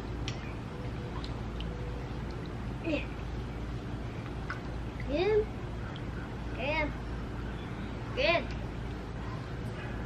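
Water splashes gently.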